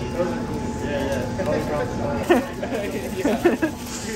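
Aluminium foil crinkles as a burrito is wrapped.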